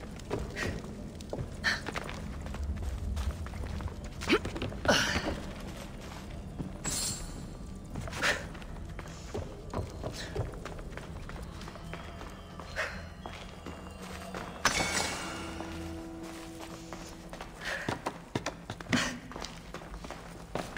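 Footsteps tread on wooden boards and dirt.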